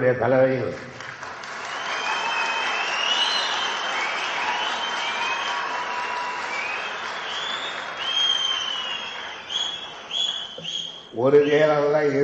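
A crowd of men chatters and calls out noisily.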